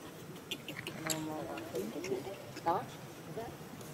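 A baby macaque squeals and cries.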